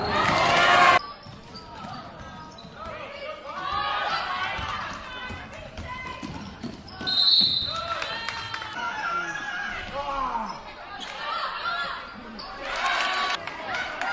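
A crowd murmurs and calls out in an echoing gym.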